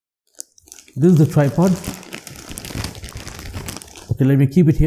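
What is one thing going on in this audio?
A cardboard box scrapes and shuffles on a table.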